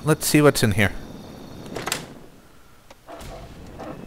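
A heavy metal door clanks open.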